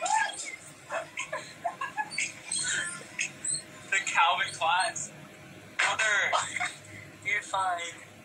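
A young man talks and laughs with animation close to a phone microphone.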